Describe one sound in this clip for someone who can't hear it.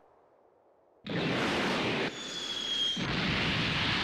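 A spaceship whooshes loudly through the air.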